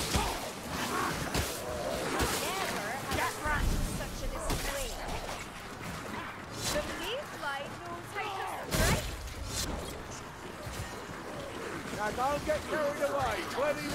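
Blades hack and thud against bodies.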